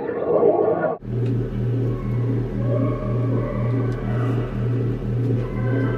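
A low electronic drone pulses steadily through loudspeakers in a room.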